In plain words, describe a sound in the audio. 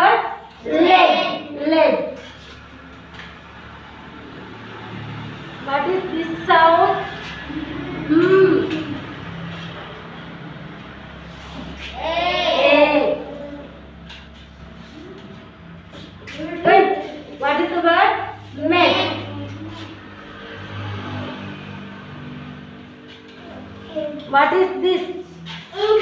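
A woman speaks slowly and clearly, as if teaching, close by.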